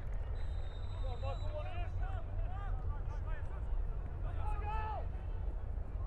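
Players call out to each other across an open field in the distance.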